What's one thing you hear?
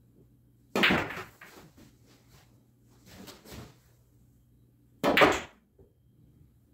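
A billiard ball rolls and knocks against a cushion.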